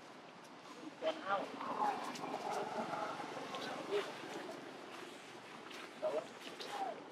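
Young monkeys squeal and chatter.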